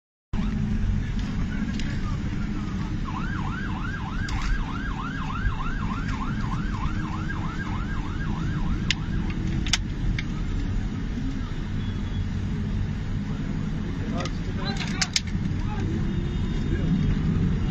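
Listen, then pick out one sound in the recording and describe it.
Fire truck engines rumble nearby, steady and low.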